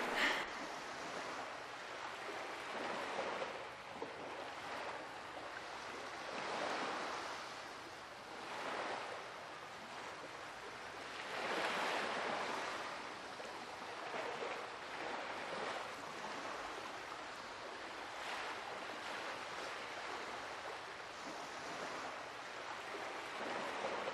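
Waves roll and wash softly on the open sea.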